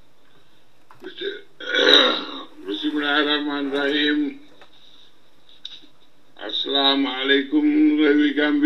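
An elderly man speaks into microphones with animation.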